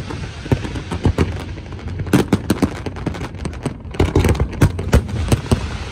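Fireworks crackle and hiss as they burst.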